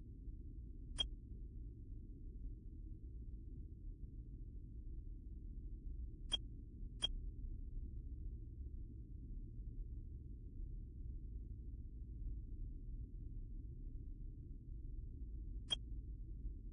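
A short electronic blip sounds a few times as votes are cast in a game.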